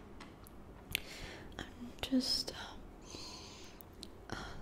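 A young woman whispers softly up close.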